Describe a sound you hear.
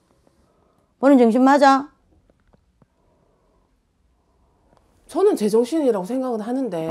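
A middle-aged woman speaks emphatically into a clip-on microphone, close by.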